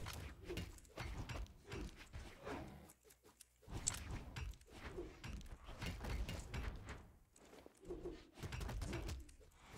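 Punches and kicks land with quick, sharp smacks and whooshes in a fast video game fight.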